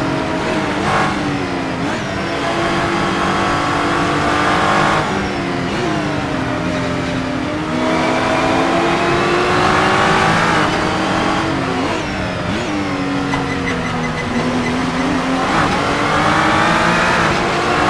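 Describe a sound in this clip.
A racing car engine roars, revving up and down through the gears.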